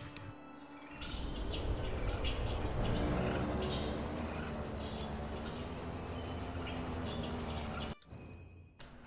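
A hovering vehicle's engine hums steadily and loudly.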